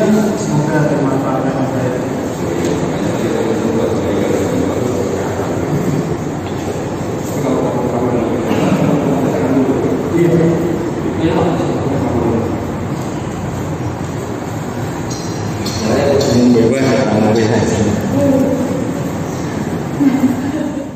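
A man talks in an echoing room.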